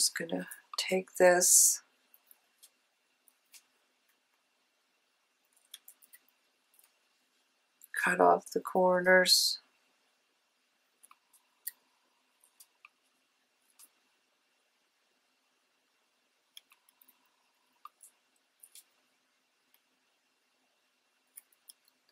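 Small scissors snip close by.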